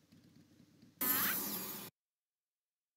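A magic spell bursts with a bright whoosh.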